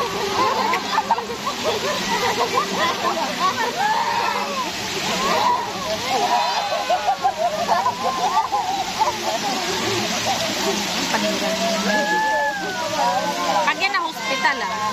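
Water splashes and sloshes around swimmers.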